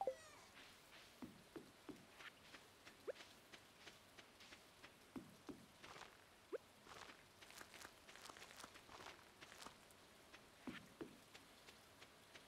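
Soft footsteps patter steadily on the ground.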